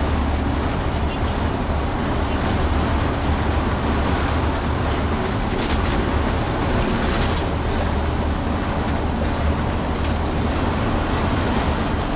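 Tyres roar on a highway road surface.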